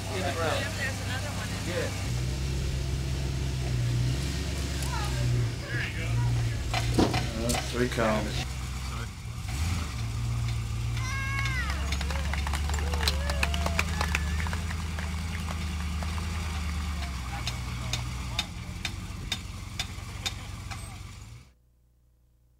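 An off-road vehicle's engine rumbles and revs as it crawls over rough ground.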